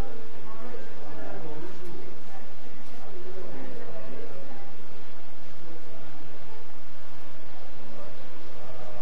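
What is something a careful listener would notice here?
A man talks nearby, muffled behind glass.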